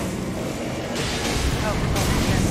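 Fire roars in a burst of flame.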